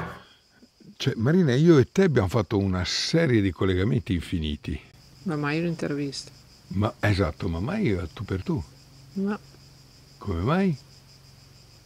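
A middle-aged woman speaks calmly and close to the microphone.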